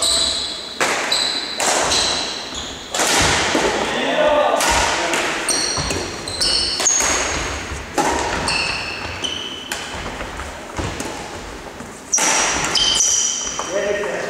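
Sports shoes squeak on a wooden sports floor.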